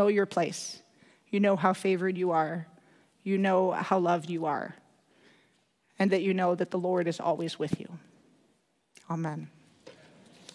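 A young woman speaks calmly through a headset microphone in a large echoing room.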